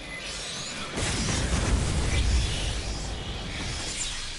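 An explosion booms with a deep rumble.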